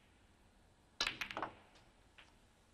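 Snooker balls clack together as a pack of reds scatters.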